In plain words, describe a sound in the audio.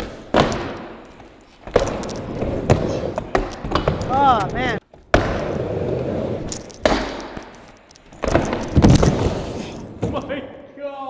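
Skateboard wheels roll and grind loudly over wooden ramps.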